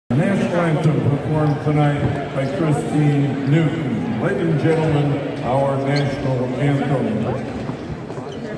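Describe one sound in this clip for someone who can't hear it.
A man sings through loudspeakers, echoing around a large arena.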